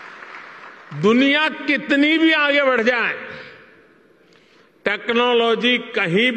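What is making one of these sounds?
An elderly man speaks with animation through a microphone and loudspeakers.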